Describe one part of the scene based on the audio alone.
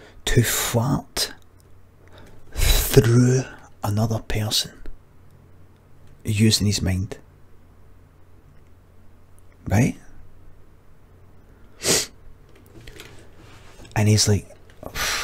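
A middle-aged man speaks close into a microphone with animation, in short bursts and pauses.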